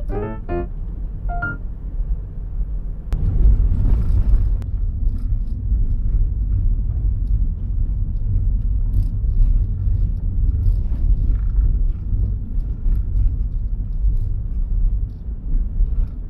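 Tyres rumble over packed snow.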